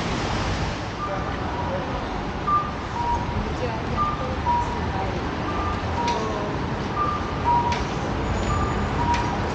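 A pedestrian crossing signal chirps in a steady, alternating two-note pattern.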